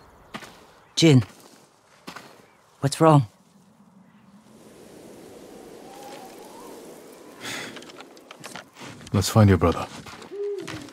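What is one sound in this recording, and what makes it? A man speaks in short, low bursts close by.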